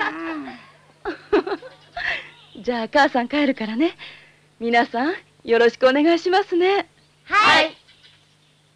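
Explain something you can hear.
A woman speaks calmly and gently.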